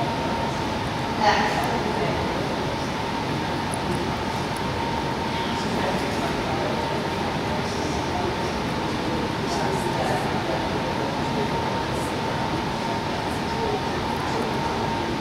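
A man speaks softly to a dog at a distance in a large echoing hall.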